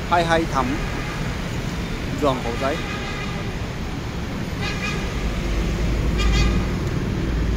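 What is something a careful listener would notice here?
Motorbike horns honk now and then.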